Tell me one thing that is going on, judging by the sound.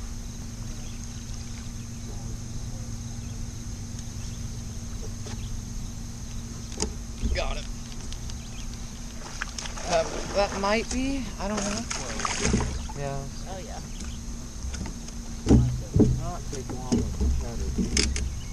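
A boat's engine hums steadily.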